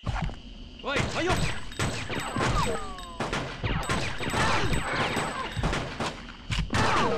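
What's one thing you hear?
An assault rifle fires rapid bursts of gunshots.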